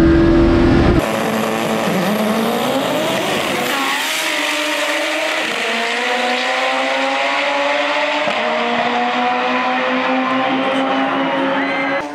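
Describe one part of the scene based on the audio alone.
Racing engines roar down the track outdoors and fade into the distance.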